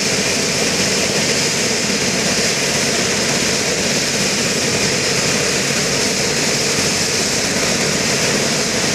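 A helicopter's turbine engine whines loudly and steadily up close.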